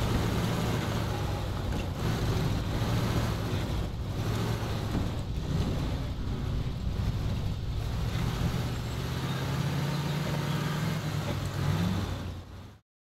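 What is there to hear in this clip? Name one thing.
An off-road truck engine growls and strains at low speed.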